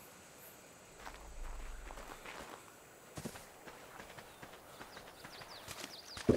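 Footsteps rustle through grass and then scuff across sand.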